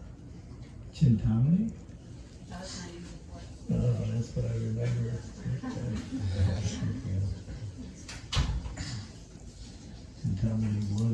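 An elderly man speaks calmly and warmly into a microphone, pausing now and then.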